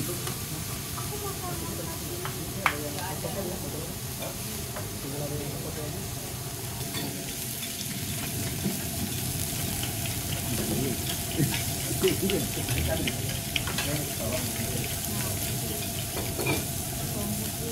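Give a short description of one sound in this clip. Food sizzles steadily on a hot griddle.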